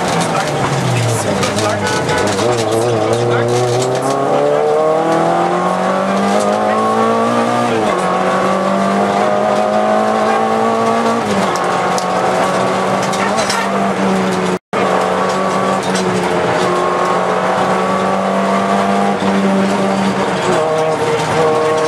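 A car engine revs loudly from inside the cabin, rising and falling as gears change.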